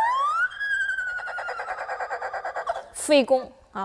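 An erhu plays a fast run of quick, bouncing bow strokes.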